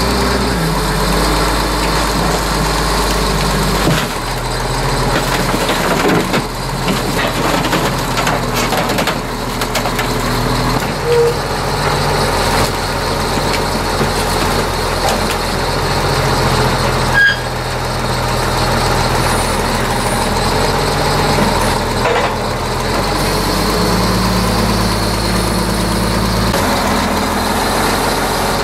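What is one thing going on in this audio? A heavy diesel engine rumbles and drones steadily close by.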